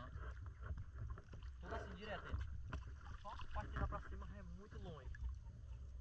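A man wades through shallow water, splashing.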